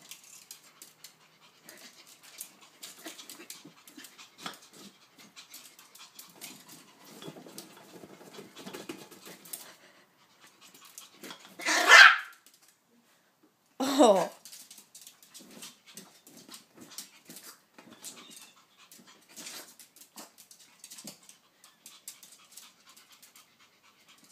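A small dog's claws patter and scratch on a hard floor.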